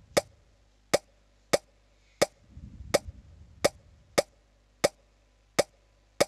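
Short game pops sound again and again at a quick, fairly regular pace.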